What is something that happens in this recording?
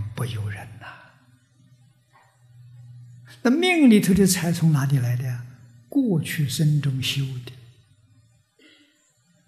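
An elderly man speaks animatedly into a microphone, with pauses.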